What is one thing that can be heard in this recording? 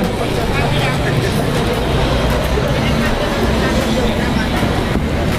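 A crowd of people chatters on a busy street outdoors.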